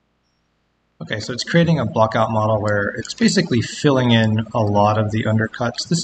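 A man speaks calmly and steadily through a microphone.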